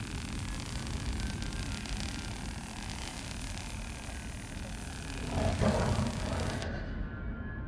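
A repair tool hisses and crackles steadily.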